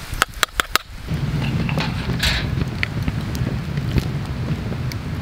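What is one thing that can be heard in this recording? A wood fire roars and crackles.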